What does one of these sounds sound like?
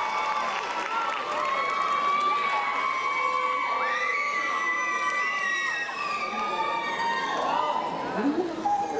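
Music with a sung melody plays loudly through loudspeakers in a large hall.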